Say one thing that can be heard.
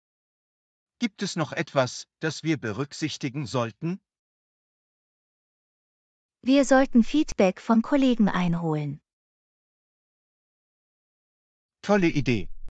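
A woman speaks calmly and clearly, close up.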